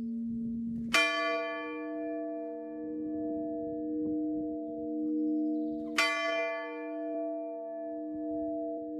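A bell with a higher tone is struck and rings out, its hum lingering.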